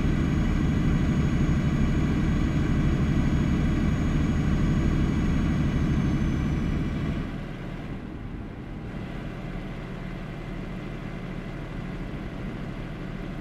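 A truck engine rumbles steadily, then eases off and idles lower.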